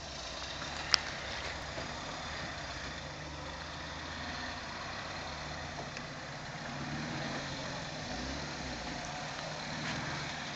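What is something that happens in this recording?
Tyres crunch over rocks and dirt.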